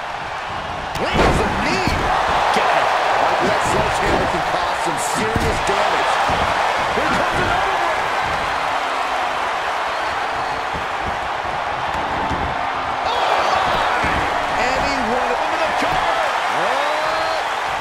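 A large crowd cheers and roars loudly in a big arena.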